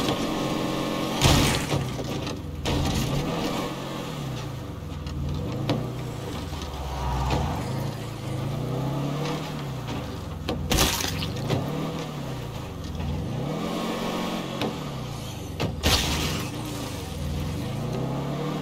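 A truck engine rumbles and revs up and down as it drives.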